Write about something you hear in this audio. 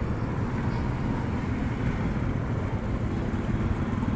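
A motorcycle engine drones past.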